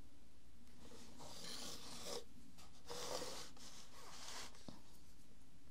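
Pages of a sketchbook rustle as they turn.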